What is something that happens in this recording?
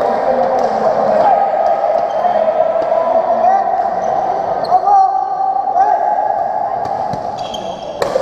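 Badminton rackets strike a shuttlecock in an echoing hall.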